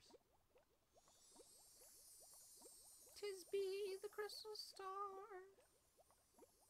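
A bright magical chime sparkles and rings out.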